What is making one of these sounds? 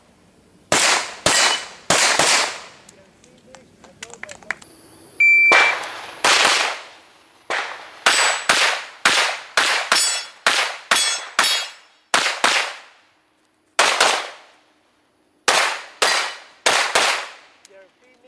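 Pistol shots ring out in quick bursts outdoors, each followed by a short echo.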